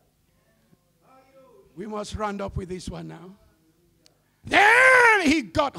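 An elderly man preaches into a microphone, speaking with rising passion and shouting loudly.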